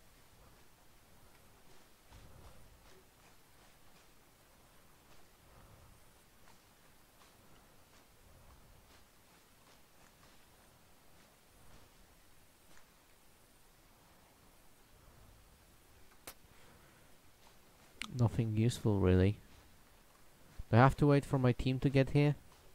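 Footsteps tread softly over grass.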